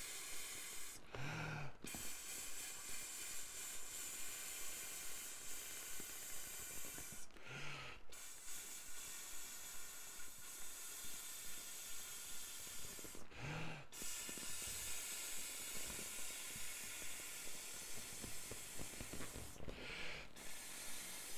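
A man draws a quick, loud breath between blows.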